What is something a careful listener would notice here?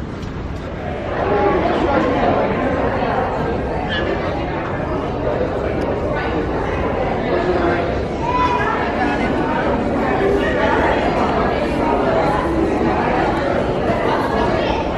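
A crowd of adults chatters in a busy, echoing hall.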